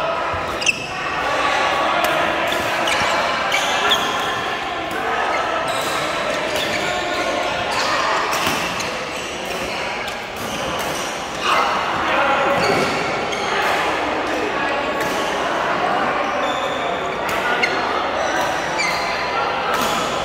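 A murmur of many voices of men talking fills the hall.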